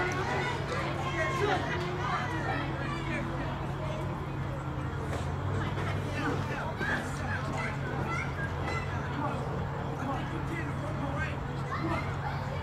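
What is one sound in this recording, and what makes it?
A crowd shouts and cheers outdoors.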